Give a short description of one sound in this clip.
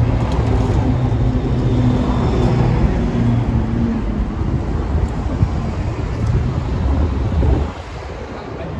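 A bus engine rumbles nearby in the street.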